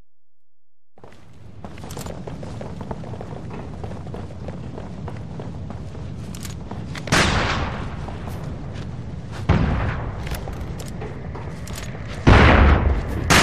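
Footsteps run quickly across hard ground.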